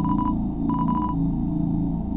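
Short electronic beeps chirp rapidly.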